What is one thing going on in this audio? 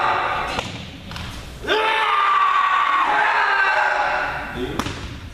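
A man shouts long, loud battle cries in a large echoing hall.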